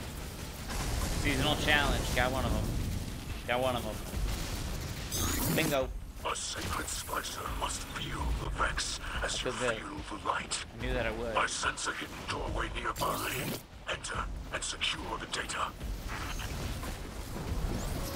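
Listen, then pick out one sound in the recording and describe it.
A man talks with animation into a microphone.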